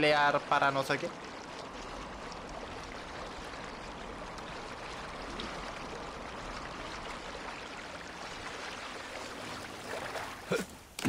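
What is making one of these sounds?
Water splashes and rushes past a boat.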